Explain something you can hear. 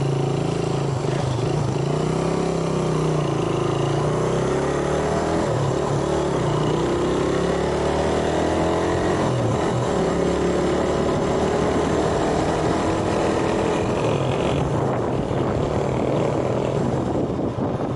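A motorcycle engine hums steadily and shifts in pitch as the bike rides along.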